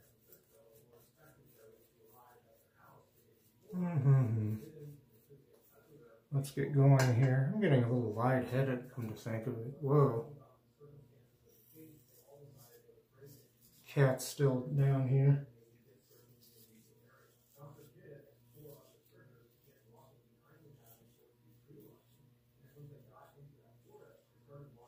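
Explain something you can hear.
A razor scrapes softly over stubble.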